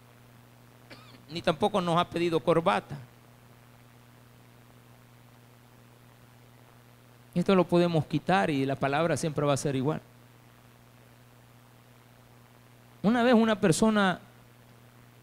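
A middle-aged man speaks with animation through a microphone and loudspeakers, in short bursts with pauses.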